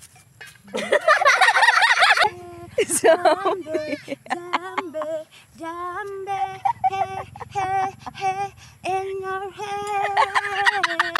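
Young women laugh loudly close by.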